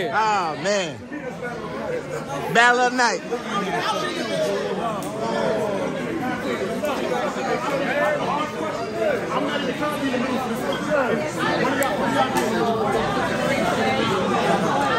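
A crowd chatters in a large room.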